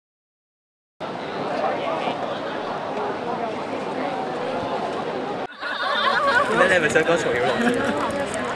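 A crowd of young people chatters nearby outdoors.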